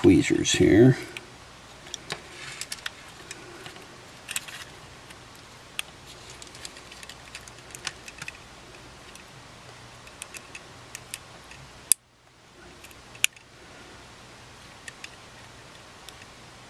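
Small metal tools click and tap against a device's parts.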